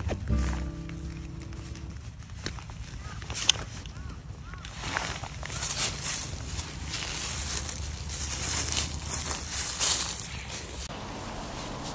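Tent fabric rustles and crinkles close by.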